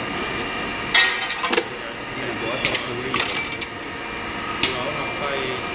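Metal parts clack and click sharply now and then.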